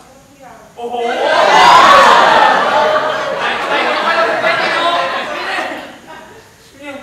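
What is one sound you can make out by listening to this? A second young man laughs loudly.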